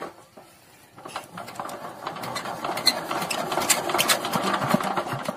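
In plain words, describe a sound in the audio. A small diesel engine sputters to life and chugs loudly.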